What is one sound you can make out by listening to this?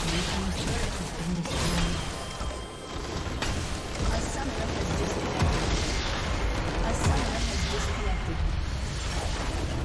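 Game spells and blasts crackle and boom in a battle.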